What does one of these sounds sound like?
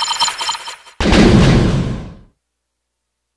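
A loud crashing sound effect booms and fades.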